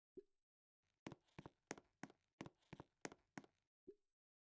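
Quick light footsteps patter on the ground.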